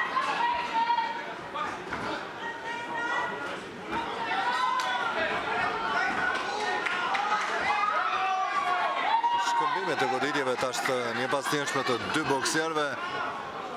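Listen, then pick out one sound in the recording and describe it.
A crowd of spectators shouts and cheers.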